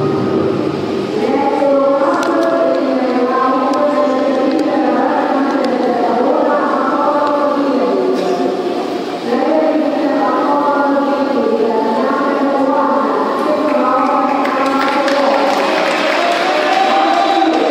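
An anthem plays over loudspeakers and echoes through a large hall.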